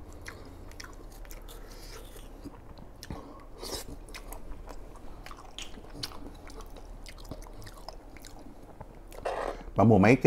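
A young man chews food noisily with his mouth close to a microphone.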